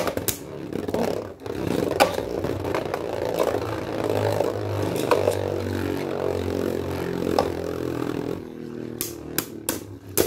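Spinning tops knock against each other and the bowl's rim with sharp clicks.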